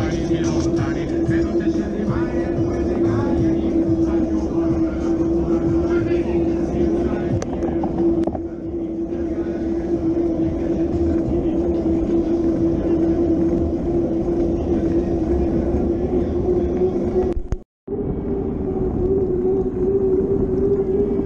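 Wind rushes loudly over the microphone.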